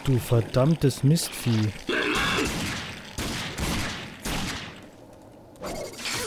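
A revolver fires several loud shots.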